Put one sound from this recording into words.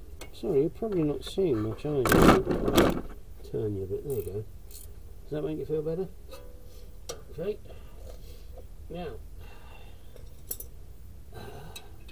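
A metal wrench clinks and scrapes against car parts.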